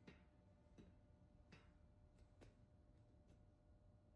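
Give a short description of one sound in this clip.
Footsteps clank on a metal grate.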